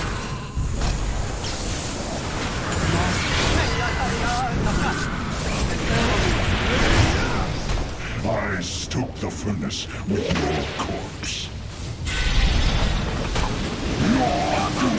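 Spell blasts crackle and boom in a fast fight.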